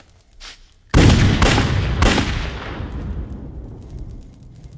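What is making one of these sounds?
Gunshots ring out loudly, echoing.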